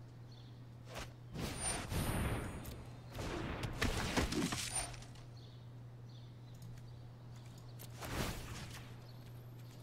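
Magical whooshing and chiming effects sound in bursts.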